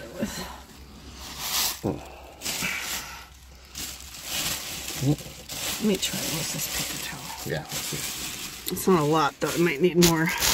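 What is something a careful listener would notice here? Plastic sheeting rustles close by.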